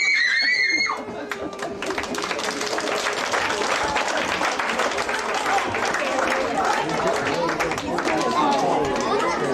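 An audience of children and adults chatters.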